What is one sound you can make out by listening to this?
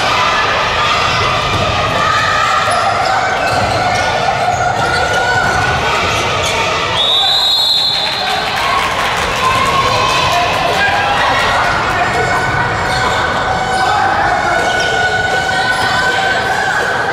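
A crowd of spectators cheers and chatters in a large echoing hall.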